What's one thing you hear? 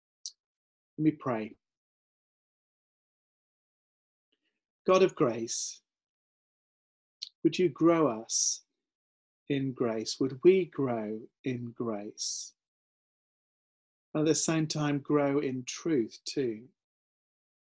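A middle-aged man speaks calmly and close to the microphone, in short bursts with pauses.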